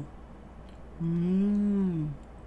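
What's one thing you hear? A young person hums a long drawn-out note close to a microphone.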